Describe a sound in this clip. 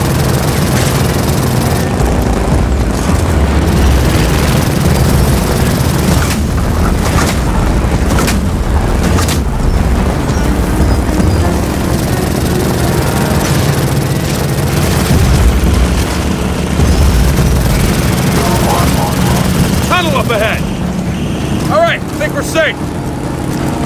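A motorcycle engine roars steadily.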